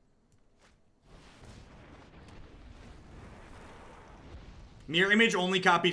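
A fiery blast whooshes and roars.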